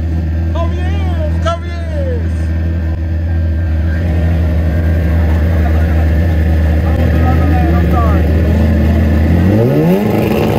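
A drag racing motorcycle engine rumbles loudly at idle.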